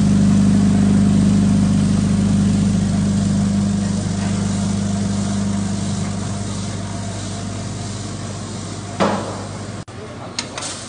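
A bucket elevator hums with a low drone.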